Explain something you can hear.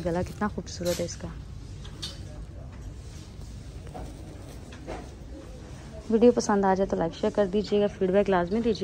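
Fabric rustles as a hand handles it.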